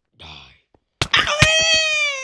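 A sword strikes with a sharp hit.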